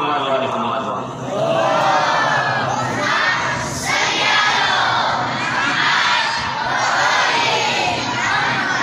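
A man chants melodically into a microphone, heard through a loudspeaker with echo.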